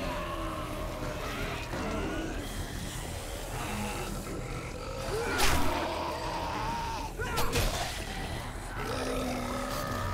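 Flames crackle and roar on burning zombies.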